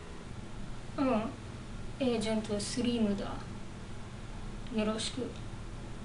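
A young woman speaks in a flat, bored voice close by.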